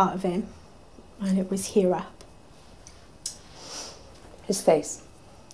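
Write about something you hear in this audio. A young woman speaks quietly and calmly, close by.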